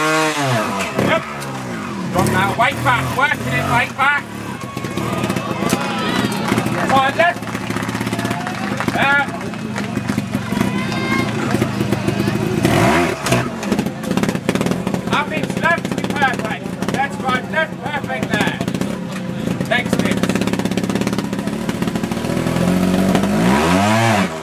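A trials motorcycle engine revs in sharp bursts as the bike climbs over rocks.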